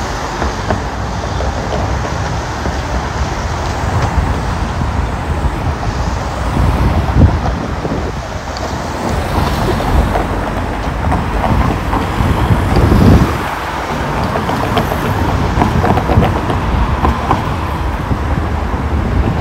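Cars drive past with a rushing sound.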